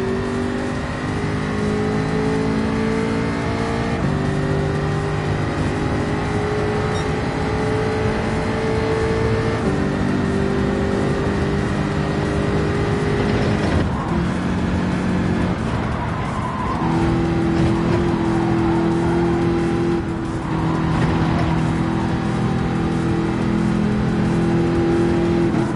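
A racing car engine roars at high revs, shifting up and down through the gears.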